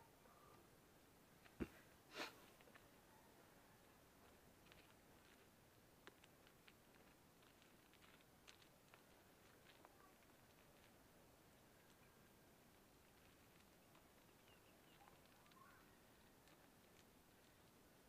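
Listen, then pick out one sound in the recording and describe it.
Small stones and dry soil scrape and crunch under a hand.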